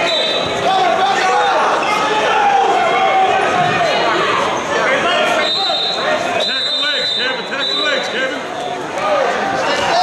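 A crowd of spectators chatters and shouts in an echoing gym.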